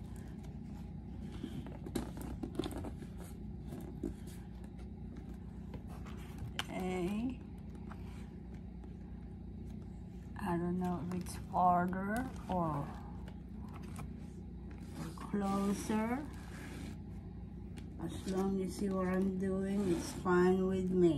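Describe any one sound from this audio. Paper rustles and creases under hands.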